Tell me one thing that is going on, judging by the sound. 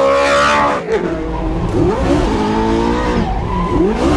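Tyres squeal as a car slides sideways.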